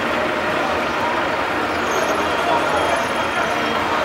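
A bus door swings open.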